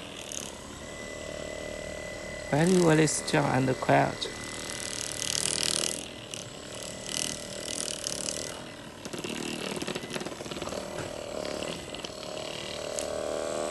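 A massage gun motor hums steadily.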